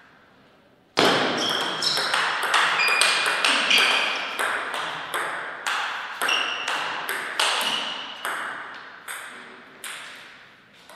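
A table tennis ball is struck back and forth with bats.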